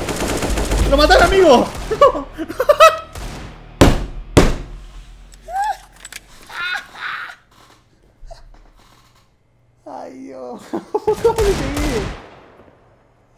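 A young man shouts and laughs excitedly into a headset microphone.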